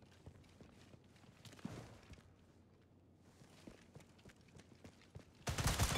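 Footsteps thud on wooden stairs.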